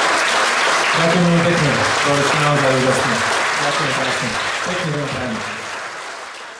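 A woman sings into a microphone in a large hall.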